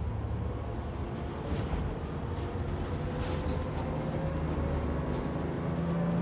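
A bus engine rumbles steadily as the bus rolls along.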